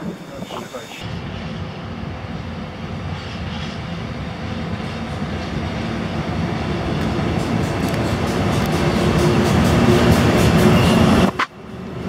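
An electric locomotive approaches with a deep rumble that grows steadily louder.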